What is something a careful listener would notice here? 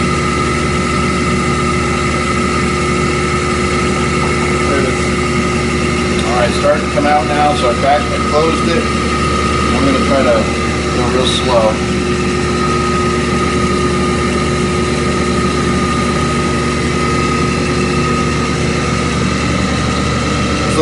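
A motor hums steadily throughout.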